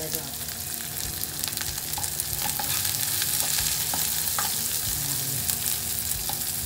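A spatula scrapes and clicks against the pan.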